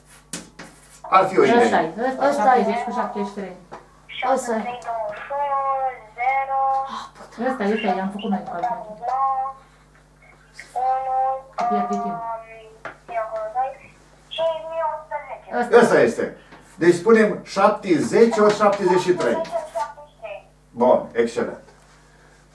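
An elderly man talks calmly, lecturing nearby.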